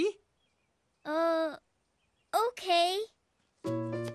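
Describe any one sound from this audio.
A young girl speaks with surprise.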